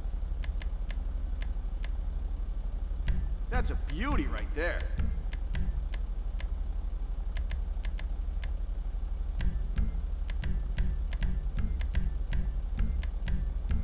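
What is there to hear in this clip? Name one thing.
Short menu clicks tick as selections change.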